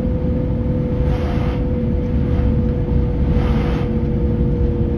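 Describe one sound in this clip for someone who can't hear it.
Oncoming trucks rush past with a brief whoosh.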